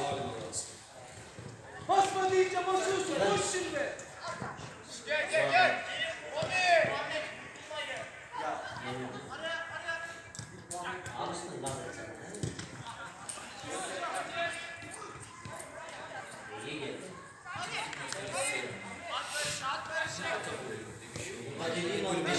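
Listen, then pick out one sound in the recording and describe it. Young men shout and call out to each other across an outdoor field.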